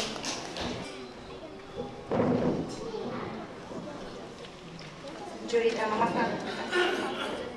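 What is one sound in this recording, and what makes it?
A woman speaks into a microphone, heard over loudspeakers in a large hall.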